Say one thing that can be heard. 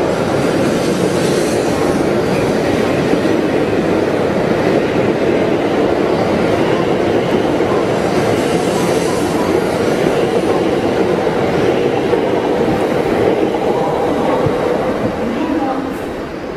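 A high-speed electric train rolls past close by.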